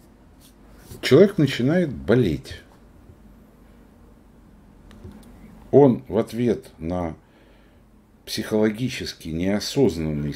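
An elderly man speaks calmly through a microphone on an online call.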